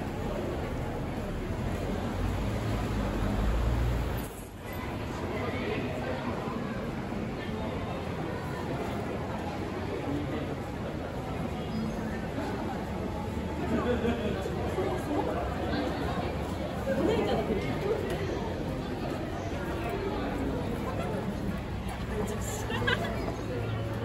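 A crowd of people murmurs and chatters.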